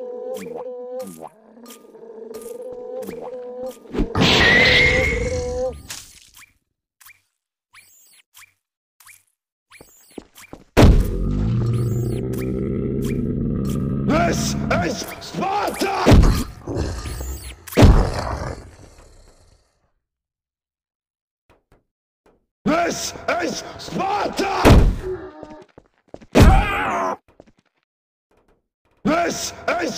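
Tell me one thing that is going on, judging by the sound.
Monstrous creatures screech and growl loudly.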